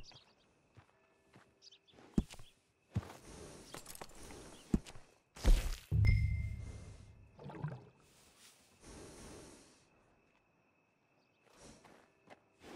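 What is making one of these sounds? A horse snorts and blows nearby.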